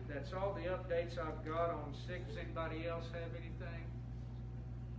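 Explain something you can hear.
A man speaks calmly through a microphone in an echoing room.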